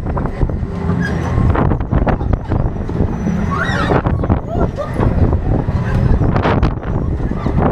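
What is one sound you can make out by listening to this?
A fairground ride whirls and rumbles loudly close by.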